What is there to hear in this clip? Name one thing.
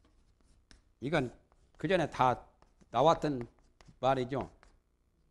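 A man speaks calmly in short phrases.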